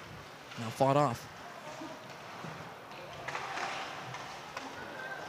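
Skates scrape across ice in a large echoing rink.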